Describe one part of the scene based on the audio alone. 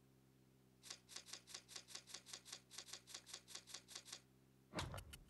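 Quick electronic ticks sound in a rapid run.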